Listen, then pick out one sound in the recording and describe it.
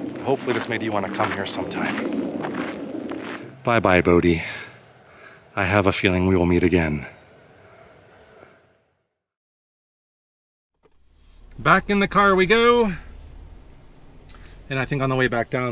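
A middle-aged man talks to the listener calmly, close to a microphone.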